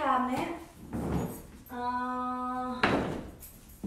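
A rolling stool's wheels rumble across a wooden floor.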